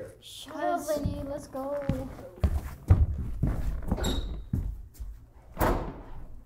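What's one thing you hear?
Footsteps shuffle down steps.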